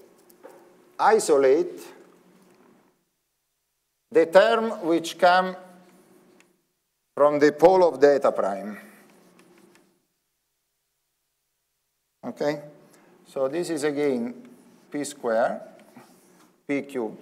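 A man lectures calmly through a microphone, pausing between phrases.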